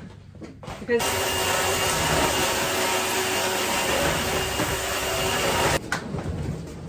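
A vacuum cleaner runs with a steady loud whir.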